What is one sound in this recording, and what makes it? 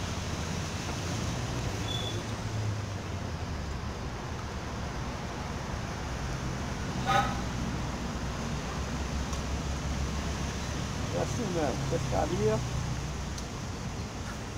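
Wind rumbles outdoors and rustles tree leaves.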